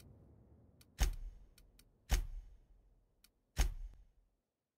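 Menu buttons click sharply a few times.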